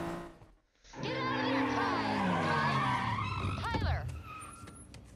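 A car engine revs loudly as a car drives past.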